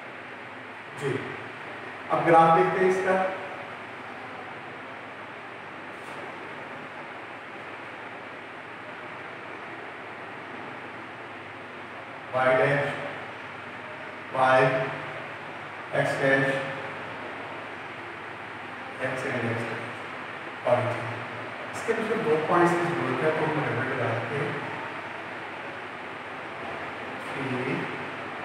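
A middle-aged man speaks calmly in short phrases.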